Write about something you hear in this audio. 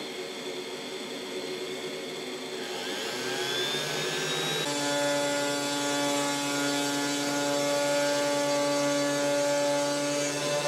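A small CNC router spindle whines as it mills grooves into plywood.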